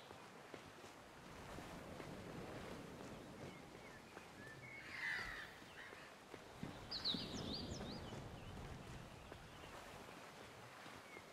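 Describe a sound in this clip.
Footsteps patter quickly on a dirt path.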